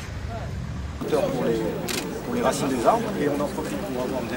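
A man explains calmly nearby.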